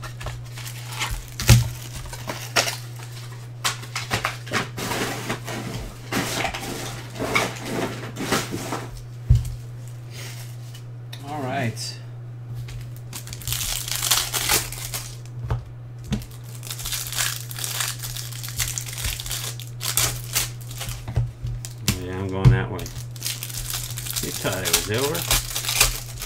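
A plastic card wrapper crinkles and tears.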